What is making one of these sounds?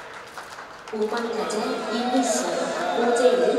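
Players clap their hands.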